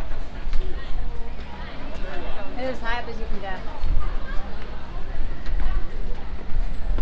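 A crowd of visitors chatters nearby outdoors.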